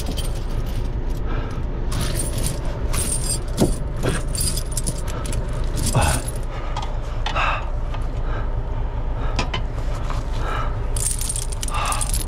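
Metal chain links clink and rattle close by.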